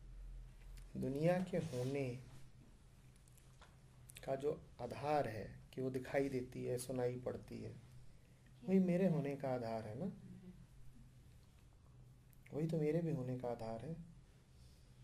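A man reads aloud calmly, close by.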